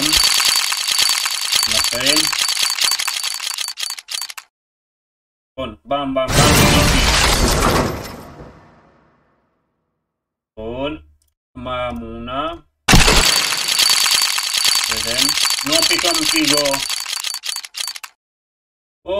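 Rapid clicking ticks of a game's spinning prize reel.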